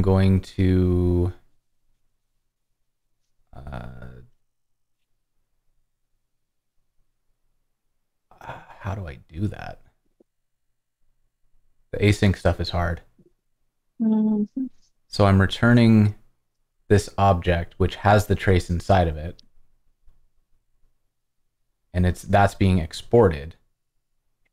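A man talks calmly through a microphone over an online call.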